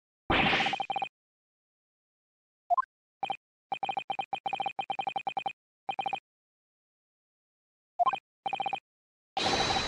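Short electronic blips chirp in quick runs.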